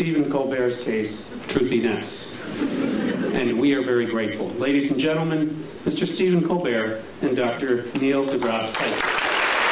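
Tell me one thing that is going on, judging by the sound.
An elderly man speaks steadily into a microphone, reading out.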